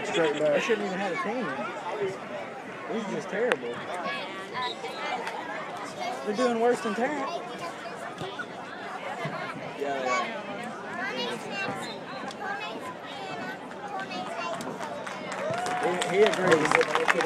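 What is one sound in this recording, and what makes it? A crowd of people chatters and cheers outdoors.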